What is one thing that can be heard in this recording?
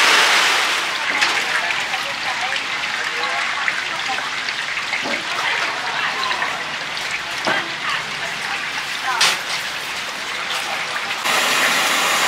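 Oil pours and splashes into a metal pan.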